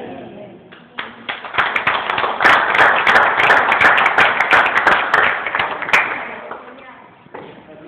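A group of people applaud loudly.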